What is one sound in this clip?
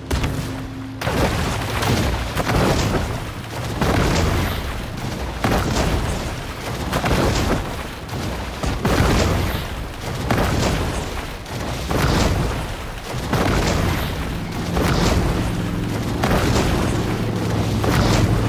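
A creature splashes as it swims rhythmically through water.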